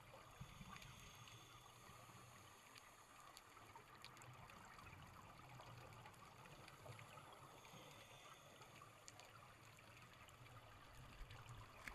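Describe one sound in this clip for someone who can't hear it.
Air bubbles gurgle and rumble underwater in soft bursts.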